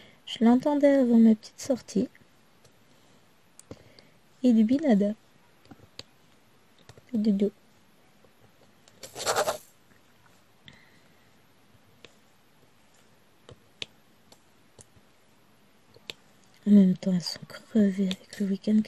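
Small plastic beads click softly as a pen presses them into place.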